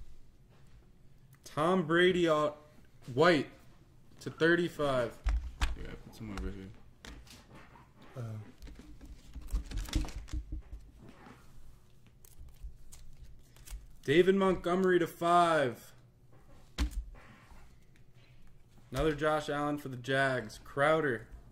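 Trading cards slide and rustle in hands.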